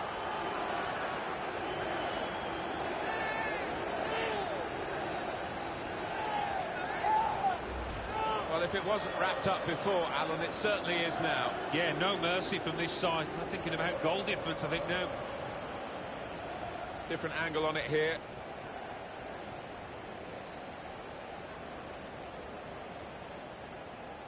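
A stadium crowd roars and cheers steadily.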